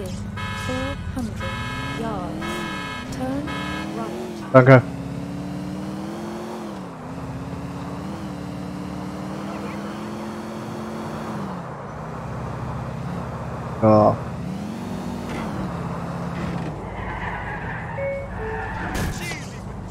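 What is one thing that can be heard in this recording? A car engine revs and roars as it speeds along.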